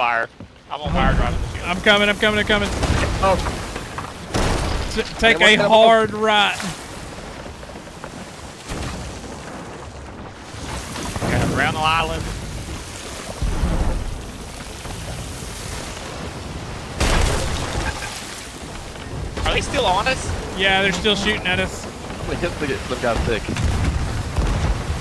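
A man talks excitedly into a close microphone.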